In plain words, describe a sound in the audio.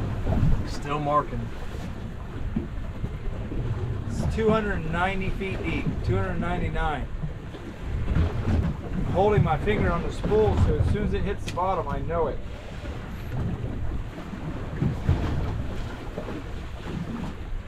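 Wind blows outdoors on open water.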